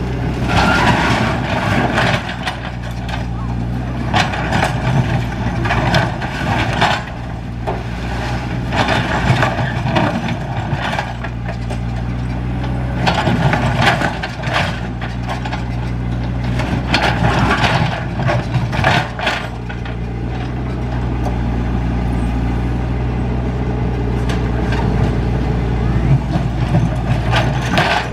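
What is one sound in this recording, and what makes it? Rocks scrape and clatter against a metal truck bed.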